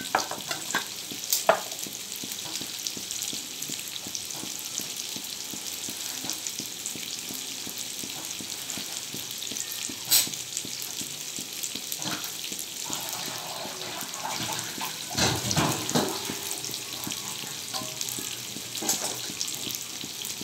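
Tofu sizzles and crackles in hot oil in a pan.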